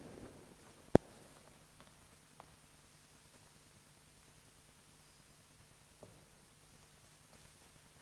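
Footsteps fall softly on a hard floor in a quiet, echoing hall.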